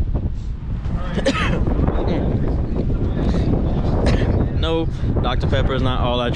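A young man speaks casually, close to the microphone.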